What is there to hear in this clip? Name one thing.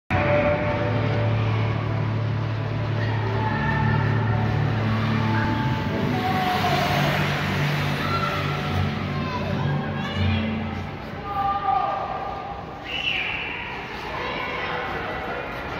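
Young girls chatter and call out to each other nearby.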